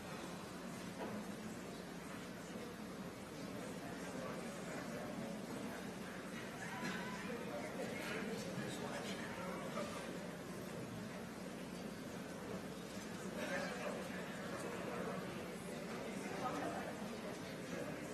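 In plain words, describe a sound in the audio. A violin plays far off in a large hall.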